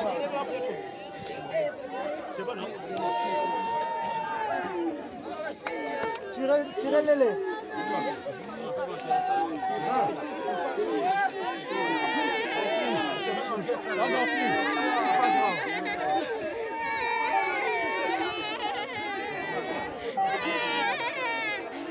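A crowd of men and women sing together outdoors.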